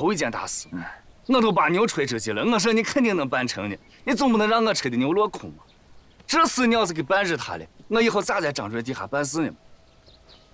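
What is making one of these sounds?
A young man speaks earnestly up close.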